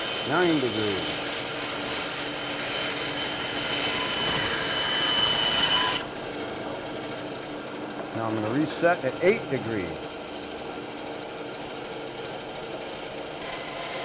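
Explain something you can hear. A band saw motor hums steadily.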